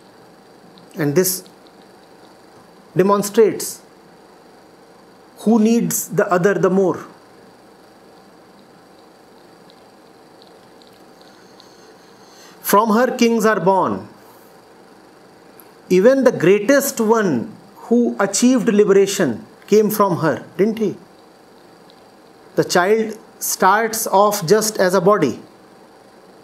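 A man speaks calmly and earnestly into a close microphone, in short bursts with pauses.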